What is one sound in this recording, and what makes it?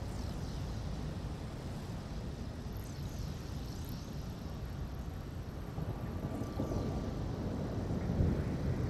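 A rushing, rumbling whoosh of someone zipping along a rail goes on steadily.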